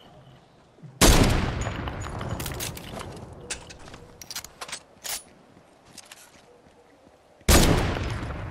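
A sniper rifle fires a loud shot that echoes away.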